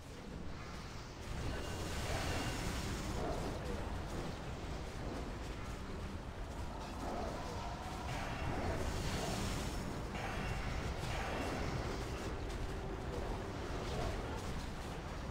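Spells and battle effects crash and whoosh loudly.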